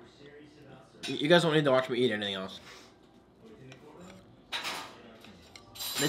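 A fork clinks against a plate.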